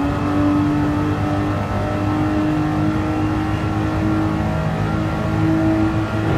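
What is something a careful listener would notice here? A racing car engine drones steadily at high revs.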